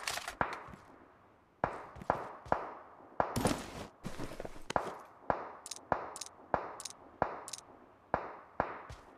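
Gear clicks and clatters sharply, over and over, as items are picked up.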